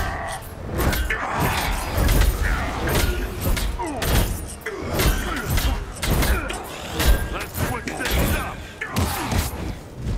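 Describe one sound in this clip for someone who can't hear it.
Energy blasts crackle and boom in rapid bursts.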